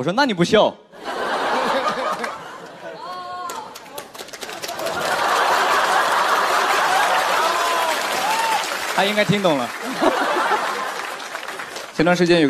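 An audience laughs and applauds in a large room.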